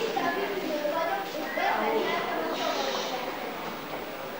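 A young girl speaks clearly in an echoing hall.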